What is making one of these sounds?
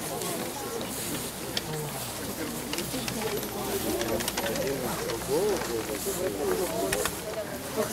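A man talks on a phone nearby, outdoors.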